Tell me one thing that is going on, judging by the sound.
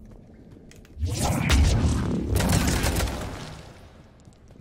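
Webbing crackles and tears apart with a loud burst.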